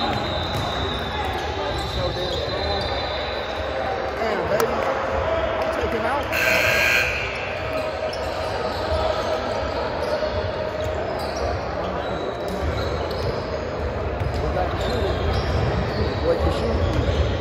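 Sneakers squeak sharply on a hard floor, echoing.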